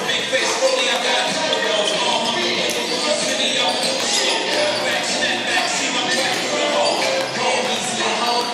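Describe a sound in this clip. Girls chatter and call out across the gym.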